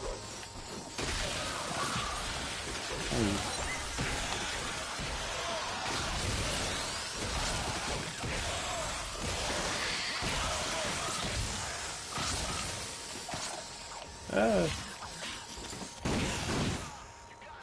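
Blasts and impacts burst repeatedly.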